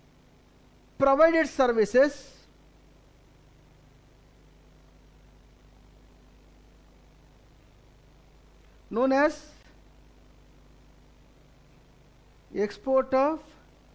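A middle-aged man speaks calmly into a microphone in short bursts.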